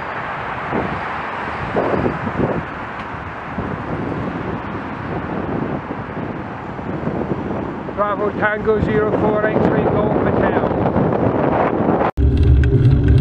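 Wind rushes loudly past, close up.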